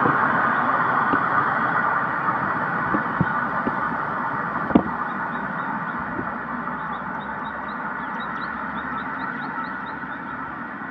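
A truck engine rumbles as it drives away and slowly fades.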